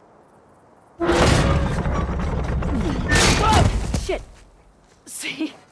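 Stone and earth crumble and rumble as the ground gives way.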